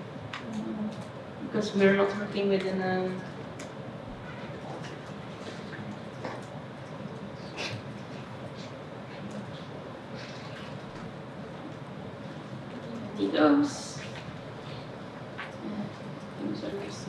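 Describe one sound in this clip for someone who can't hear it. Computer keys click softly.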